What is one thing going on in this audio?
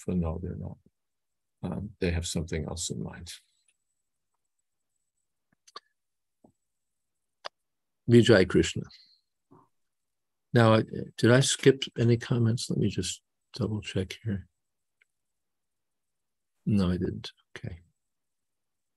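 An elderly man speaks calmly through an online call, in short bursts with pauses.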